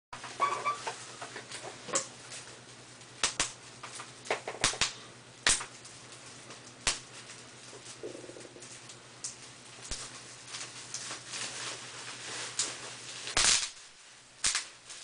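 Bubble wrap pops and crackles sharply between fingers.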